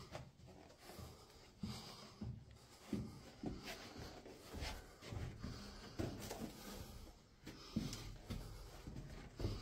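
Footsteps crunch on loose rock and grit, echoing in a narrow cave passage.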